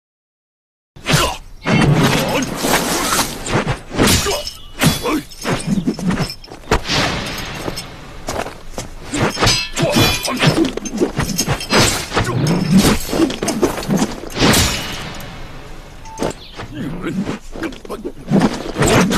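A heavy metal spade scrapes and thuds on dry gravelly ground.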